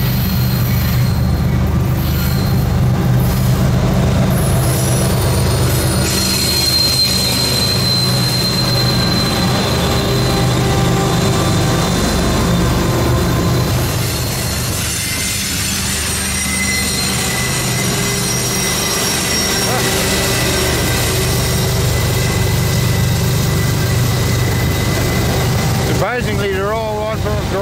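Diesel locomotives rumble loudly close by.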